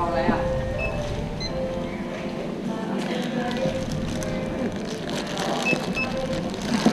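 A barcode scanner beeps at a checkout.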